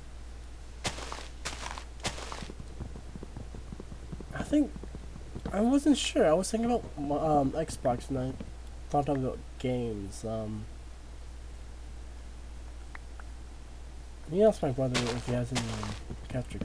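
Wood is chopped with repeated dull knocks.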